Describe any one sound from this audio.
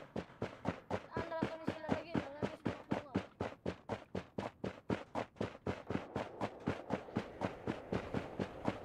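Quick footsteps run steadily through grass.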